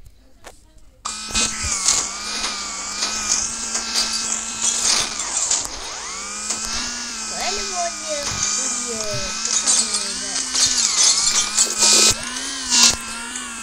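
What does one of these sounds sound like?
A game car engine hums steadily, rising and falling in pitch.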